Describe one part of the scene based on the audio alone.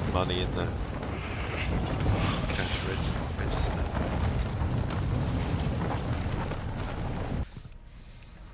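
Wind rushes steadily during a parachute descent.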